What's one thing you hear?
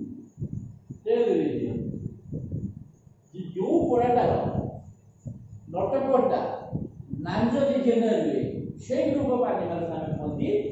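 A man speaks in a lecturing tone, close by.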